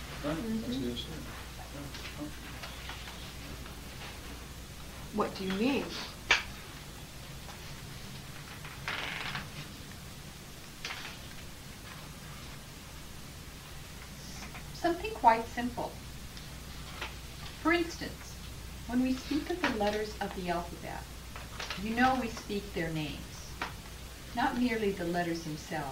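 A woman reads aloud calmly from a book, heard close by, with pauses between phrases.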